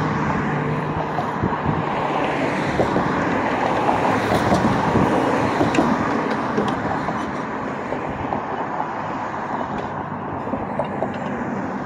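Steady wind blows outdoors.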